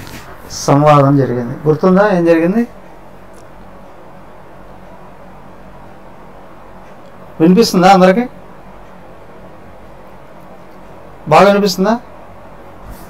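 A middle-aged man speaks slowly and calmly into a close microphone, with long pauses.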